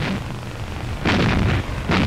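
A large gun fires with a loud boom.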